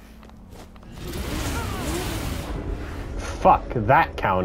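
Fiery blasts roar and crackle.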